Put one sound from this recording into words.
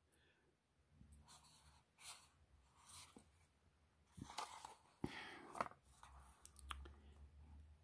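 A cardboard box rustles and scrapes as it is handled.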